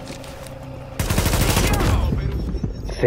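Gunfire rattles in a loud burst.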